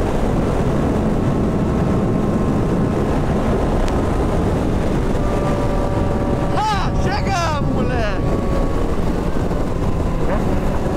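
Wind roars steadily past a moving motorcycle.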